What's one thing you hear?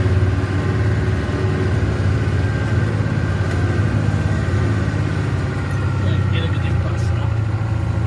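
Tyres rumble over a cobbled road.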